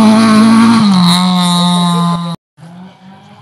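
A rally car engine roars at high revs as the car speeds past.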